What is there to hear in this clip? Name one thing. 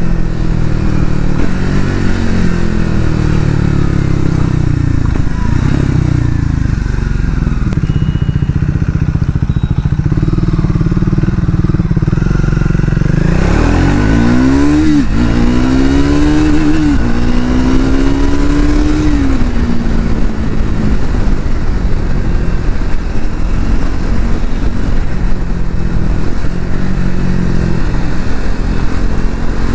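A motorcycle engine rumbles steadily close by, revving up and down as it rides.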